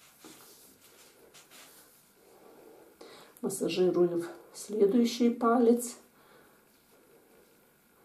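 Hands rub and press softly against bare skin.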